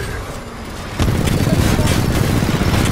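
Machine gun fire rattles rapidly.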